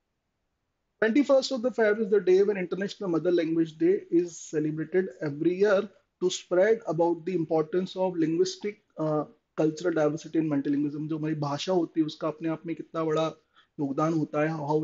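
A man speaks calmly into a microphone, explaining at length.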